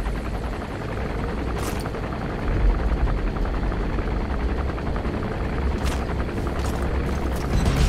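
A helicopter's rotor thumps close by.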